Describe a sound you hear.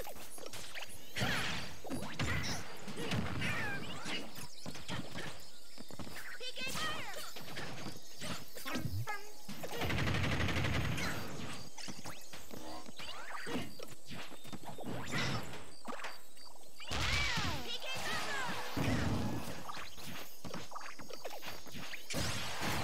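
Video game fighters land sharp hits amid whooshing attack effects.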